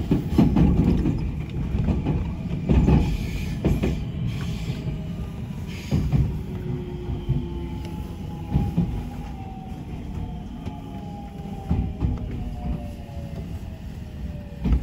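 Train wheels clatter and squeal over rail joints.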